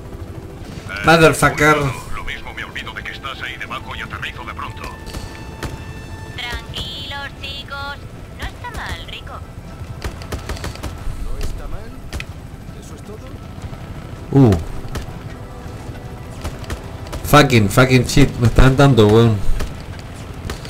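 A young man talks loudly and excitedly into a microphone.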